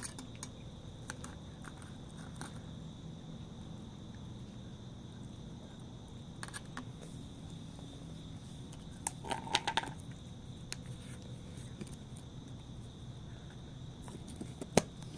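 A cat chews and laps wet food from a metal tray.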